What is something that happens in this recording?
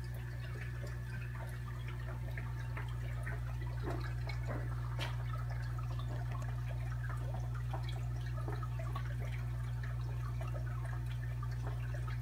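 Air bubbles rise and gurgle softly in water.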